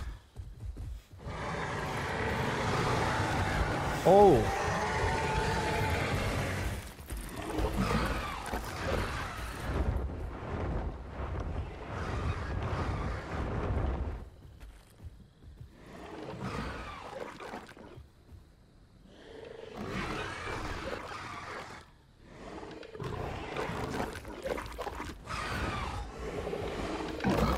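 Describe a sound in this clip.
A young man talks close to a microphone with animation.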